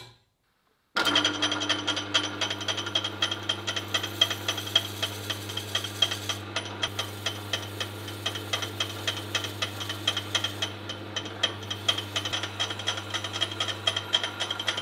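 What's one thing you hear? A drill bit grinds and chatters as it bores into the workpiece.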